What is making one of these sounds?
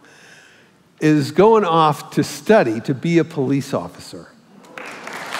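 An elderly man speaks into a microphone in a large hall.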